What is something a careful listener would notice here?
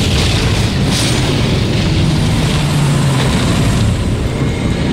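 A loud magical blast roars and crackles.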